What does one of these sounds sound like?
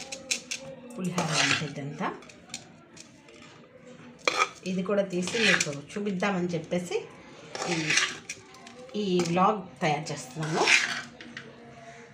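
A spoon stirs and scrapes through rice in a metal pot.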